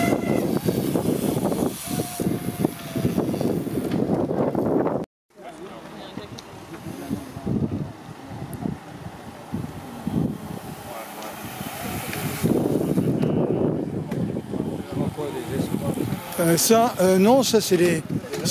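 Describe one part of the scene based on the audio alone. Racing bicycles whir past on a road.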